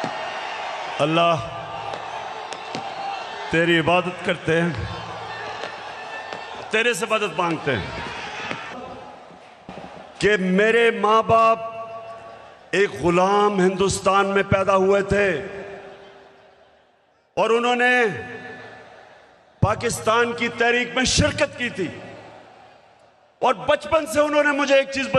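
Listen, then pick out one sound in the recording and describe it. A man speaks forcefully into a microphone, echoing over loudspeakers outdoors.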